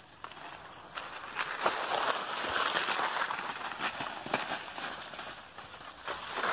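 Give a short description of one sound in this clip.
Bicycle tyres crunch over dry leaves and twigs.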